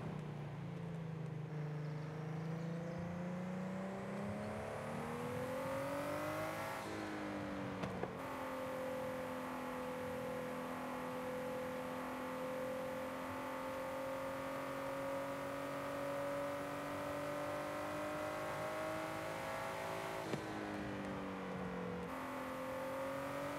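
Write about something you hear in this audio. A sports car engine roars steadily, rising in pitch as it speeds up and dropping briefly with each gear change.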